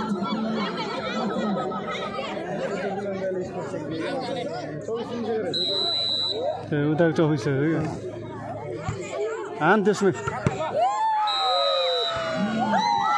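A large outdoor crowd shouts and cheers loudly.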